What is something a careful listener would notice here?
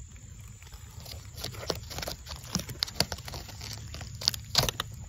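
A fingertip taps and rustles against a dry bracket fungus.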